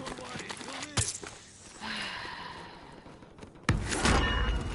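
A gun fires loud, sharp shots.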